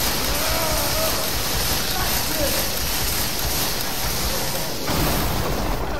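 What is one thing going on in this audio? A chainsaw roars loudly as it cuts.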